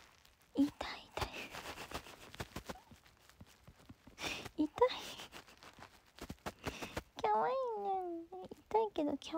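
A hand rustles softly against fur and a blanket.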